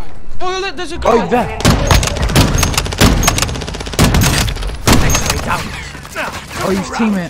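Rapid gunfire rattles loudly in an echoing tunnel.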